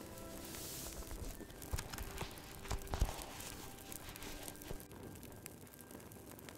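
A fire crackles and pops in a fireplace.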